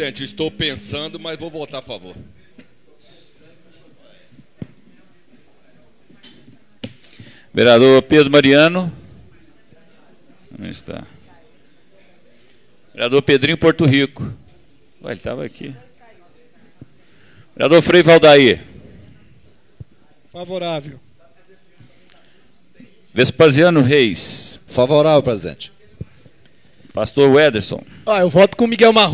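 An older man speaks forcefully into a microphone in short bursts with pauses.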